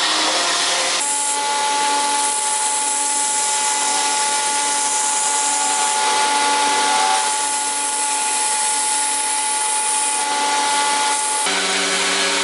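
A belt sander hums steadily as wood is pressed against it.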